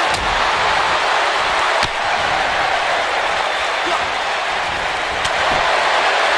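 Bodies slam with sharp thuds.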